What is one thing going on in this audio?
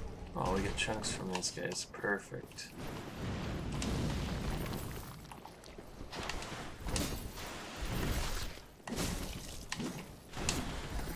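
Armoured footsteps crunch over stone.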